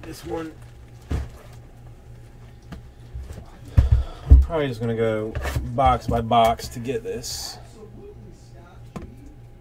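Cardboard boxes thump and slide on a table.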